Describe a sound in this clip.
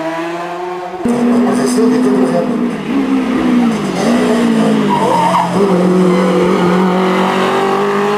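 A racing car engine roars loudly, revving up and down through gear changes.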